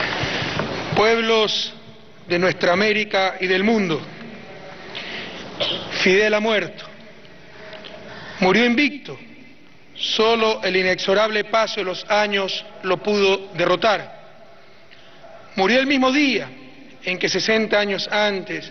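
A man speaks slowly and solemnly through a microphone over loudspeakers.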